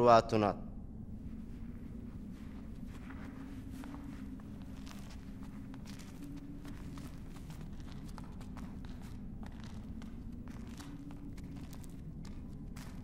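Footsteps shuffle away on a stone floor.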